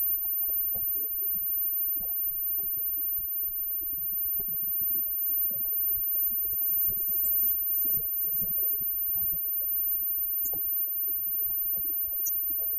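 A live rock band plays loudly, heard muffled and distorted.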